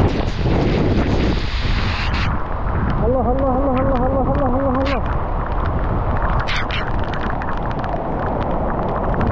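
Leaves and branches thrash in the wind.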